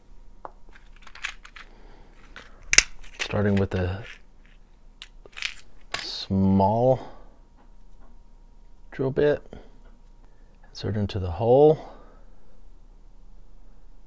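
Small plastic parts click and rattle as hands handle them.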